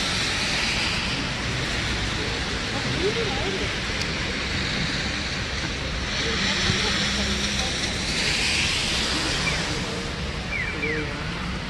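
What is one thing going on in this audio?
Car tyres hiss over a wet street as cars pass.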